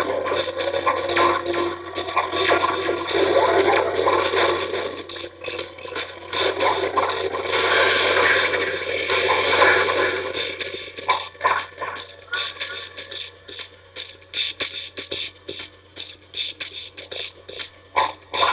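Video game sound effects zap and whoosh from a television speaker.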